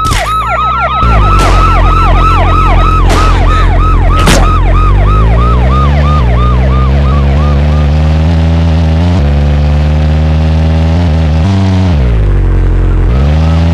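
A car engine hums and revs as the car drives off.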